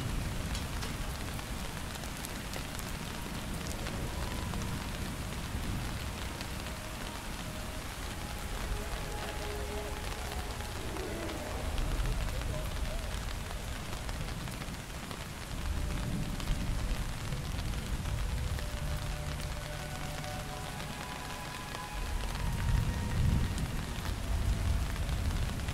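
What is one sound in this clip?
Steady rain patters outdoors.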